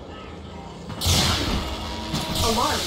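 An energy barrier crackles and whooshes loudly.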